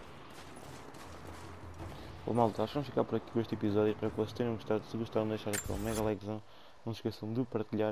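Footsteps crunch in snow.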